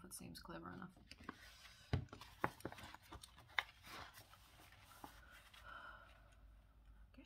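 Pages of a booklet rustle as they turn.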